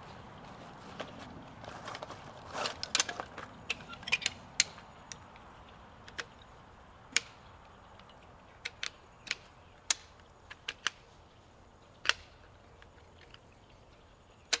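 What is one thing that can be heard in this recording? Tripod legs click and clack as they are extended and locked.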